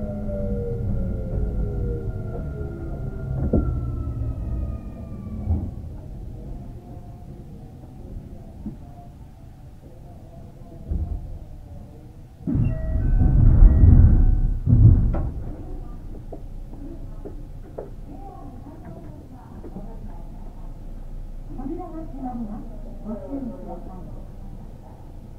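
An electric train hums as it idles nearby.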